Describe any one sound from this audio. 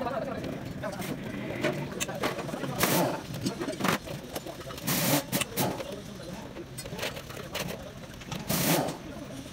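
Metal parts clink and scrape in a basin of oily liquid.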